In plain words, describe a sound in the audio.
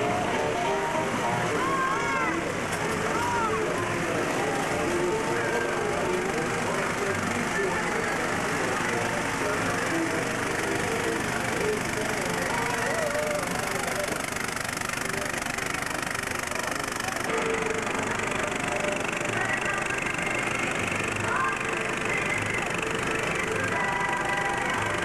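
A lively crowd chatters and calls out outdoors.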